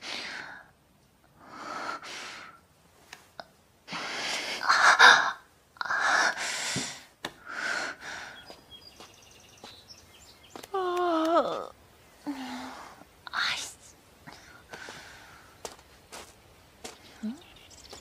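A young woman speaks close by with strained, breathy emotion.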